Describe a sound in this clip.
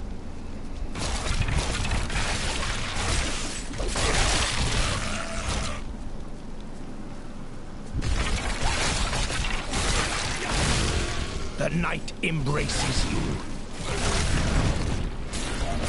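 Blades clash and hack in a noisy fight.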